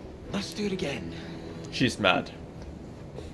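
A man speaks cheerfully and laughs.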